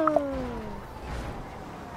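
A car engine hums as a car drives closer.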